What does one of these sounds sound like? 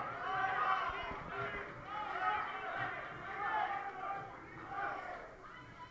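A crowd of men and women cheers and shouts in a large echoing hall.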